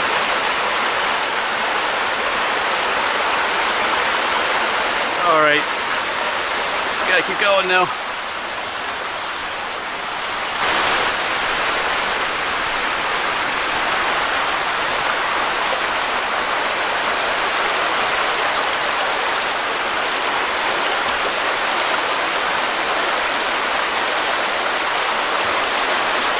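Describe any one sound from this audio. A shallow rocky stream rushes and burbles over stones.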